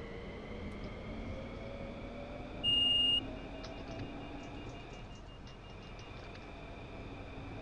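A subway train rumbles steadily along the track through a tunnel.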